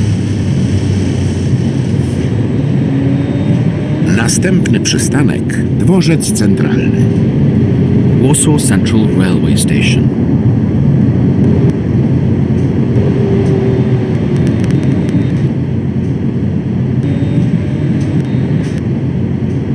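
A tram motor hums steadily, rising and falling in pitch as the tram speeds up and slows down.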